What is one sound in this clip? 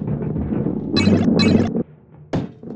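A bright chime rings twice as a coin is collected.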